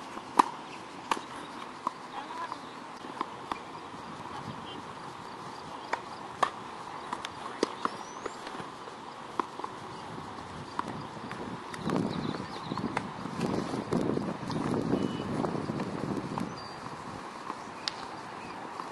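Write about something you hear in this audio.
A tennis racket strikes a ball with sharp pops, outdoors.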